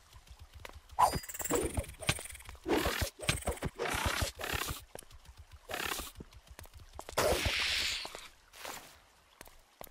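A sword strikes a spider creature several times.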